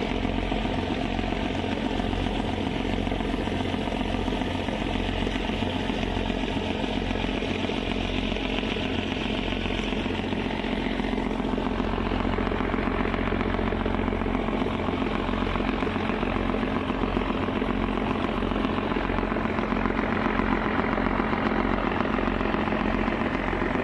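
A ship's engine rumbles steadily.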